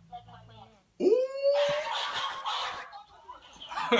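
A young man exclaims with animation close by.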